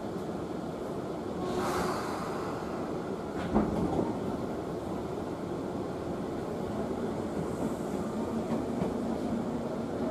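A train rumbles steadily along the tracks, heard from inside a carriage.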